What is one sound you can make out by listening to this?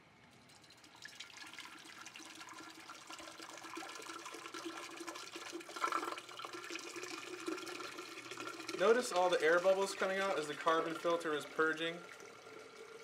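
Liquid pours and bubbles into a glass beaker.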